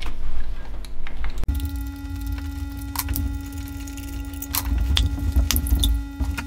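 Plastic connectors click and rattle as hands work them loose on an engine.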